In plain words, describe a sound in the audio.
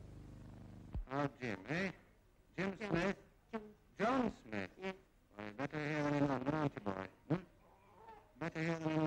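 A man speaks playfully to a baby close by.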